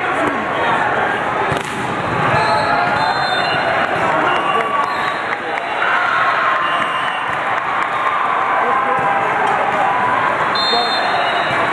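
A volleyball is struck with a dull slap now and then.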